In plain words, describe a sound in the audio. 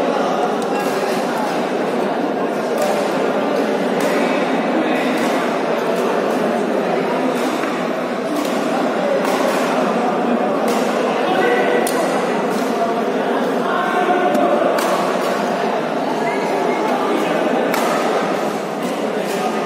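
Many people chatter throughout a large echoing hall.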